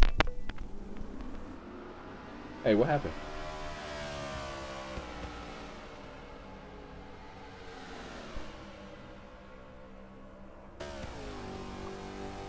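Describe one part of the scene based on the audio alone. Race car engines roar and whine past at high speed.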